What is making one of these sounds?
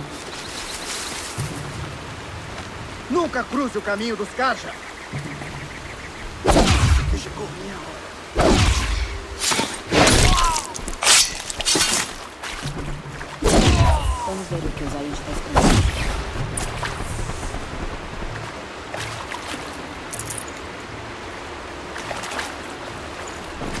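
A river rushes steadily nearby.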